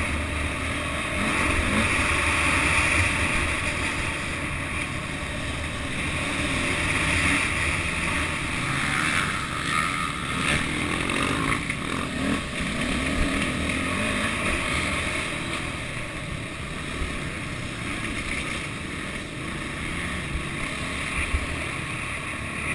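A dirt bike engine roars and revs up and down close by.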